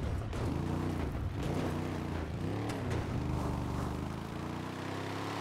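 Tyres crunch and bump over rocks.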